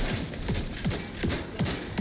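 An explosion bursts with crackling debris.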